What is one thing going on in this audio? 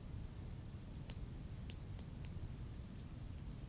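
A small animal scurries and scratches briefly.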